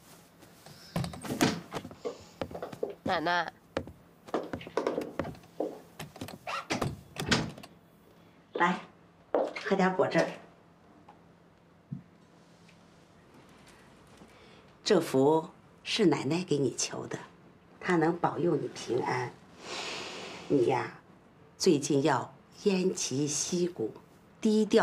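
An older woman speaks warmly and with animation, close by.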